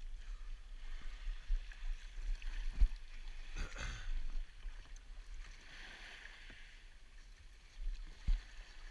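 A paddle splashes in water.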